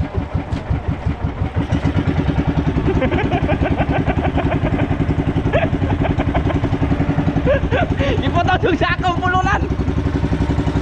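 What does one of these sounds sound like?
A boat engine chugs loudly and steadily close by.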